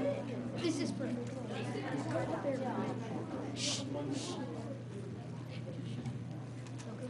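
A group of children chatter in a large echoing hall.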